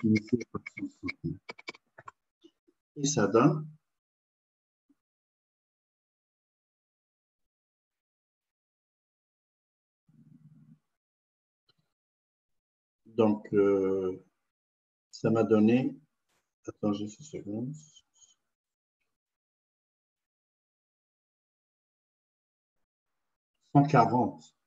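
A man speaks calmly through a microphone on an online call, in short bursts with pauses.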